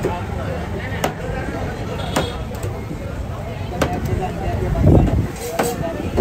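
A knife blade knocks sharply against a wooden board.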